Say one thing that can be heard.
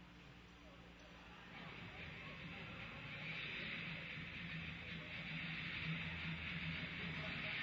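Ice skates scrape across an ice rink.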